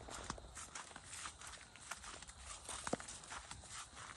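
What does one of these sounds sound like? Dry corn leaves rustle and crackle in a light breeze.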